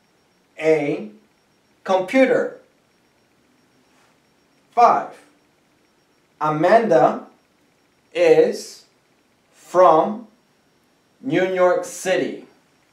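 A man speaks slowly and clearly in short phrases, close by.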